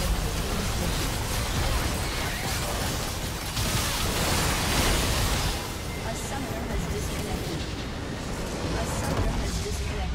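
Magic spells crackle, whoosh and boom in a busy battle.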